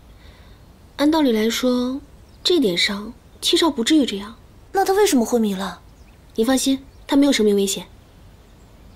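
A second young woman answers calmly and thoughtfully, close by.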